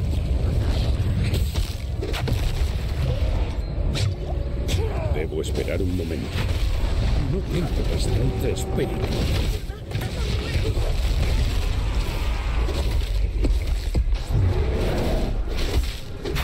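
Sharp weapon blows strike and thud.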